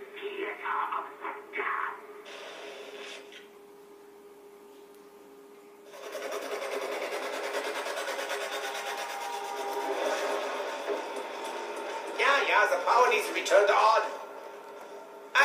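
Video game sounds play through a television speaker.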